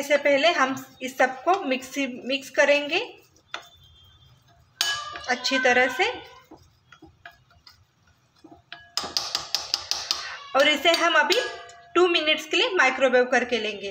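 A spoon scrapes and stirs a thick paste in a glass bowl.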